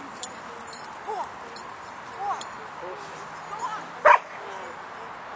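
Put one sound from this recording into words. A woman calls out commands to a dog outdoors.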